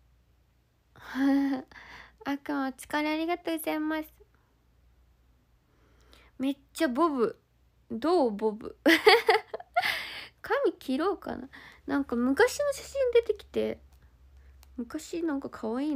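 A young woman talks cheerfully and close to the microphone.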